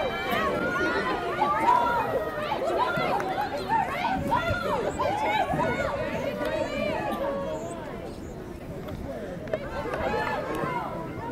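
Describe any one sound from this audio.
Young women shout and call to each other outdoors.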